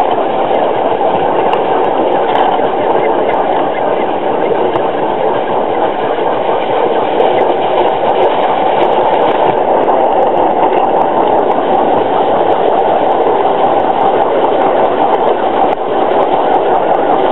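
A small steam engine hisses and chuffs steadily close by.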